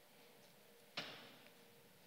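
A footstep thuds on a hollow stage.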